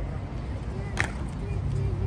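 Guards' boots stamp on stone.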